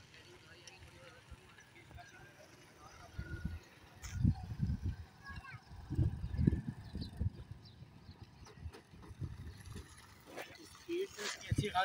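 A scooter engine hums as it passes.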